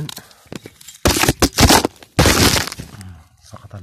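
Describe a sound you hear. Dry straw rustles and crackles close by.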